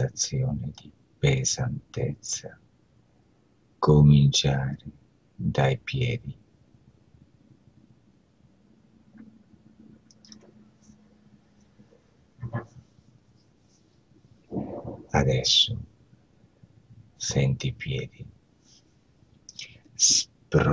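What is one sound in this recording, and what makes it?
A man speaks calmly and slowly over an online call.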